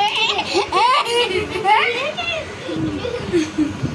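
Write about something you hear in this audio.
A young girl giggles softly.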